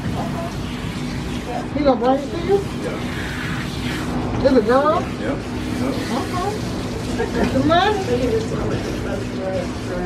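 Water sprays from a handheld hose sprayer onto a dog's coat.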